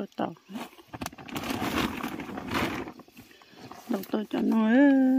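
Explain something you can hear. A plastic tarp rustles and crinkles close by.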